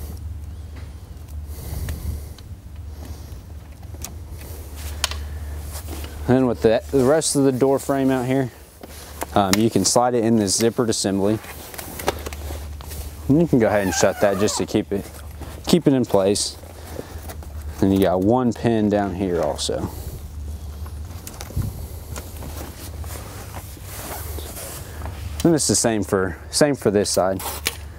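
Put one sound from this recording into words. Stiff fabric rustles and flaps as it is handled.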